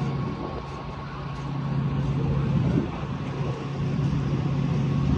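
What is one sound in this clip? A train's engine hums steadily nearby.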